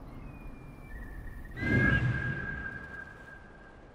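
An eagle lets out a sharp screech.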